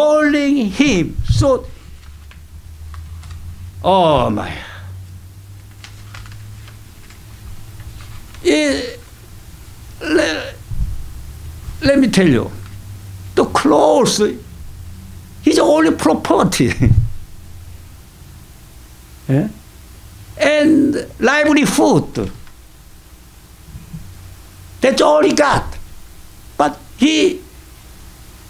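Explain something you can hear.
An elderly man speaks slowly and expressively into a microphone, with pauses between phrases.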